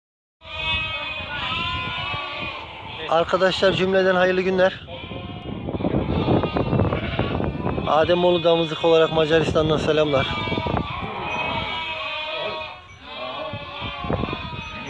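Many sheep bleat loudly and close by.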